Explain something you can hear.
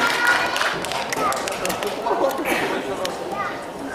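Young girls chatter and laugh close by.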